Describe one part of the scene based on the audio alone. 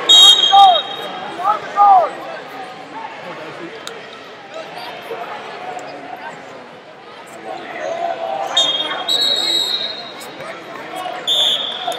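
A crowd of spectators murmurs and shouts in a large echoing hall.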